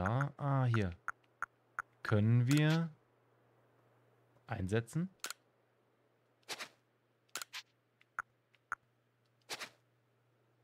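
Short electronic menu blips sound as options are selected.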